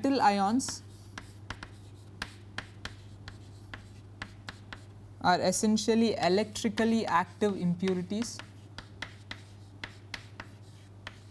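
Chalk taps and scratches on a blackboard.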